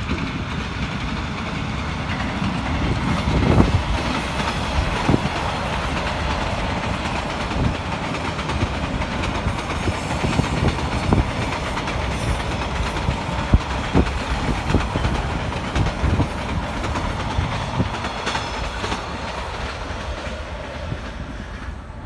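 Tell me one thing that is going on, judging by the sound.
A diesel locomotive rumbles past at a distance, pulling a long train.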